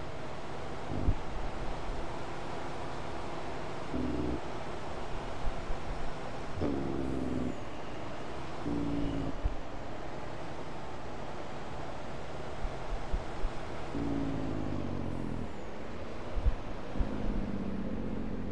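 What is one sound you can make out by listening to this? A truck engine revs up and shifts gears.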